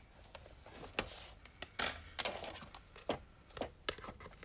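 A card taps and scrapes on a scoring board.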